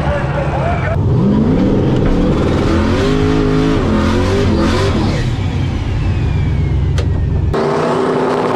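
A race car engine revs loudly from inside the car.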